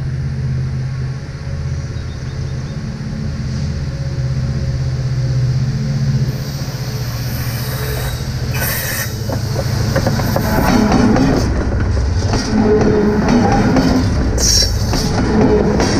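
A diesel locomotive engine rumbles as it approaches and grows louder.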